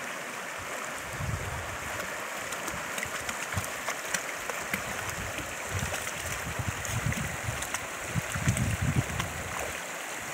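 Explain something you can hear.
Dogs splash through shallow water.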